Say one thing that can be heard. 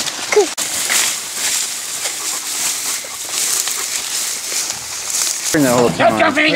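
Dry corn stalks and leaves rustle as small children push through them.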